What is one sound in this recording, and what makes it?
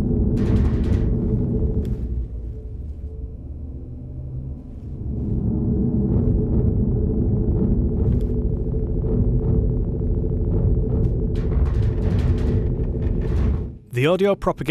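A spacecraft engine hums low and steady.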